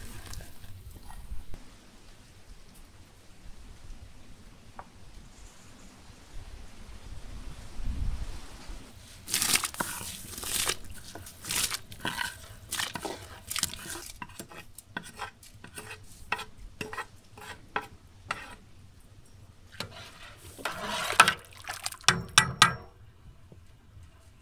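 A pot of liquid bubbles at a gentle boil.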